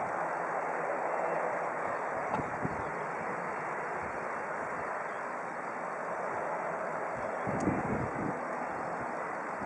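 A jet airliner drones far off on approach.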